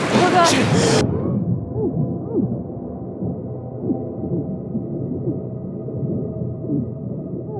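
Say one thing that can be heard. Sounds turn dull and muffled, as if heard underwater.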